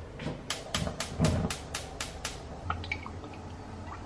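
Oil pours and trickles into a pan.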